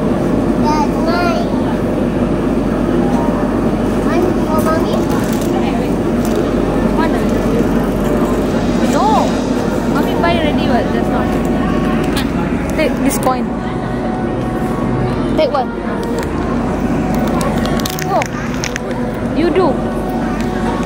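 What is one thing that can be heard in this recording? A small child's voice chirps nearby.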